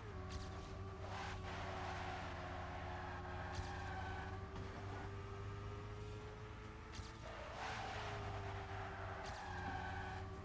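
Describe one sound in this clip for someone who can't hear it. Tyres screech and skid on the track.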